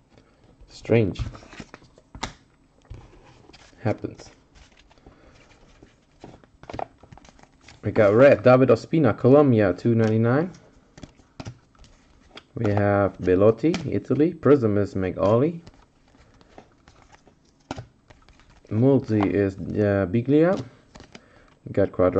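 Trading cards rustle and flick as hands shuffle through them.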